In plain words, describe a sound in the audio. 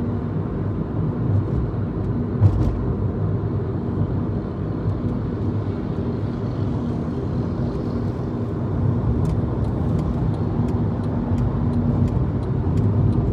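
Tyres rumble low on the road.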